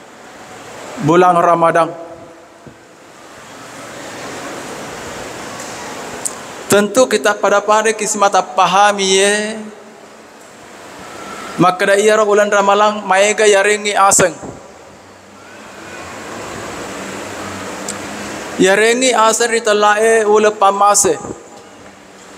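A man speaks through a microphone and loudspeakers, in slow, drawn-out phrases with long pauses, echoing in a large hall.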